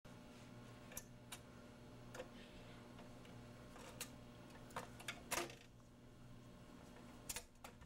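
A record changer's motor hums steadily.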